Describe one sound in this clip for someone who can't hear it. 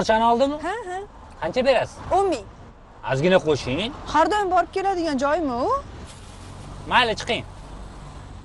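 A young woman speaks cheerfully nearby.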